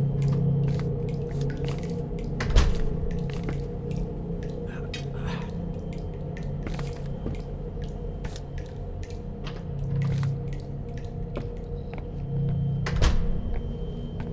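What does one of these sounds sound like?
Footsteps fall on a hard floor.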